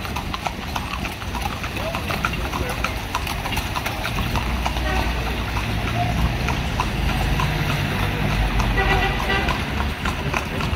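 Horse hooves clop on an asphalt street.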